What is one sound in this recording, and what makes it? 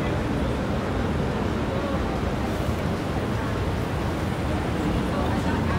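An escalator hums and rumbles steadily.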